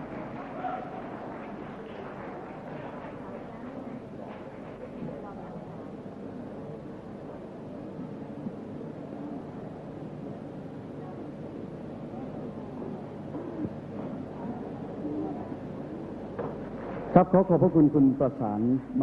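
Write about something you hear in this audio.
A man speaks over a loudspeaker in a large hall.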